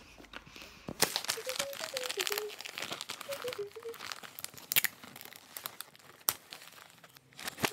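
Wrapping paper crinkles and rustles close by.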